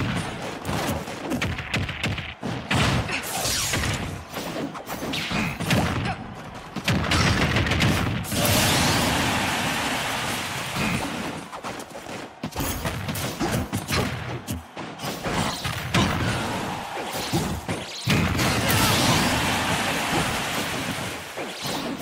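Game fighters clash with sharp hits and blasts.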